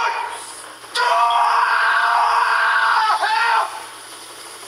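A man cries out in pain, loud and strained.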